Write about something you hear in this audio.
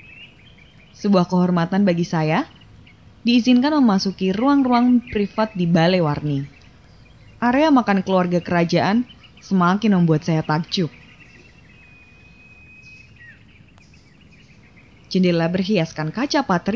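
A young woman speaks calmly and clearly.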